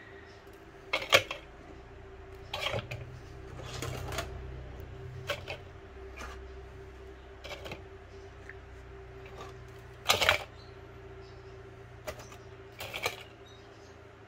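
Coils of wire rustle and drop into a plastic bowl.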